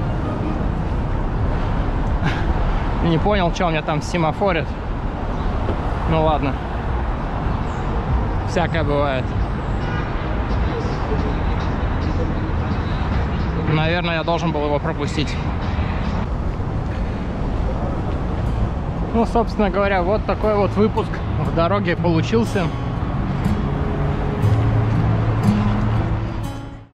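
Traffic rumbles steadily along a busy city street.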